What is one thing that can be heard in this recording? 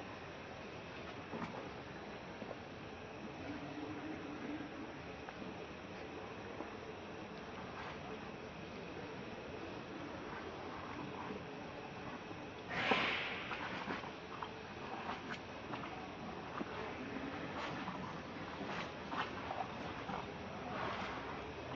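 Monkeys rustle and shift softly on a stone ledge.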